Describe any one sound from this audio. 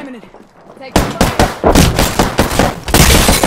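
Rapid gunfire rattles at close range.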